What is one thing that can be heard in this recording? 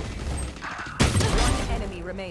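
An energy blast bursts with a sharp whoosh.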